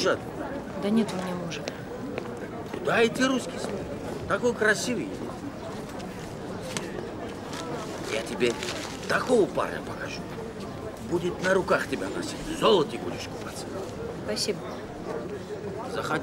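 A young woman answers softly close by.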